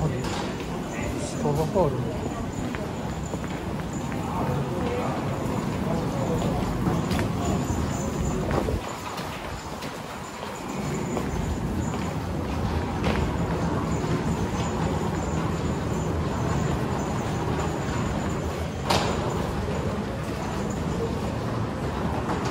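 Footsteps tap on a hard floor in a busy echoing hall.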